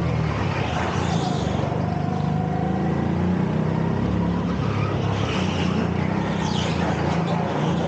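Go-kart tyres squeal on the track in the turns.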